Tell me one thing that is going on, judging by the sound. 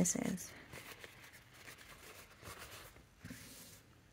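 A paper towel crinkles in hands.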